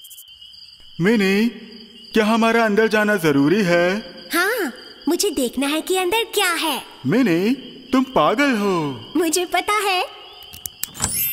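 A young boy speaks with animation.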